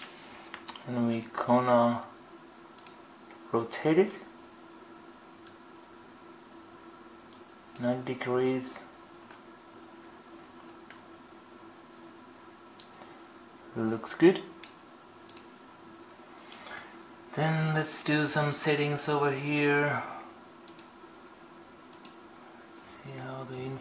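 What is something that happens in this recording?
A computer mouse clicks softly.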